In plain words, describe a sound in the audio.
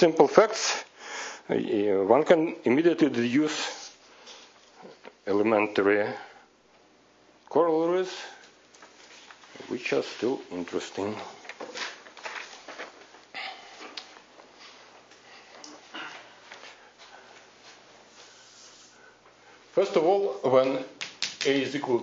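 A man speaks calmly and at length, heard through a microphone in a room.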